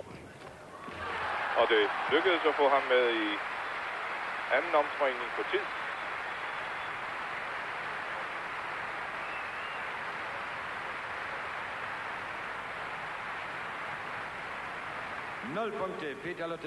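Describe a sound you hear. A crowd applauds in a large indoor arena.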